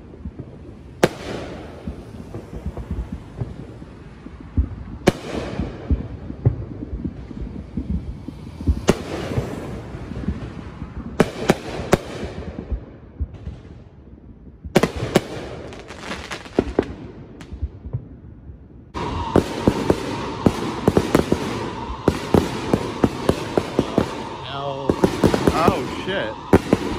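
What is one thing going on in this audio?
Fireworks crackle and pop in rapid bursts.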